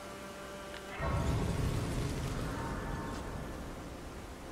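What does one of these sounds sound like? A bright magical chime swells and rings out.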